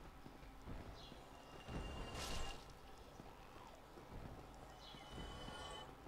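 A sword whooshes through the air.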